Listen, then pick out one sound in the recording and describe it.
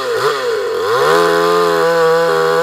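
A two-stroke chainsaw cuts through a fresh alder log at full throttle.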